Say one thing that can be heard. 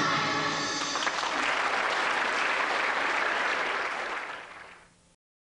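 An audience claps and cheers, then the applause fades.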